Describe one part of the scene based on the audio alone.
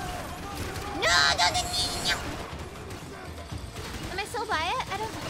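A young woman speaks with animation through a microphone, her voice rising high.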